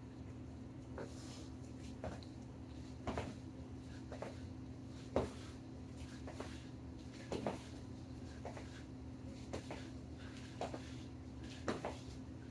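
Sneakers thud and patter on a rubber floor as a man hops and lands.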